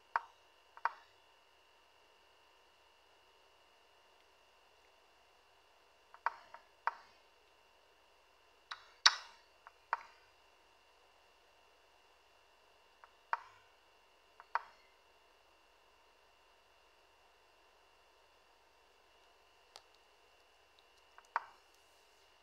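Sharp wooden clicks of chess pieces being set down come now and then.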